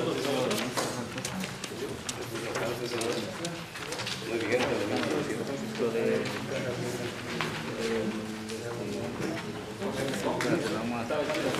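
Several men talk at once.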